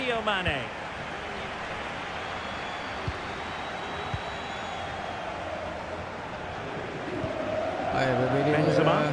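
A stadium crowd murmurs and roars steadily in the background.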